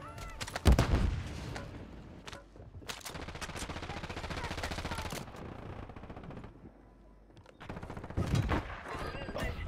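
Gunshots bang loudly from a rifle.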